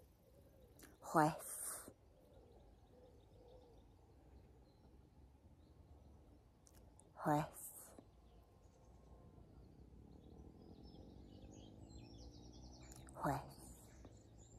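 A middle-aged woman makes short, soft vocal sounds close to a microphone.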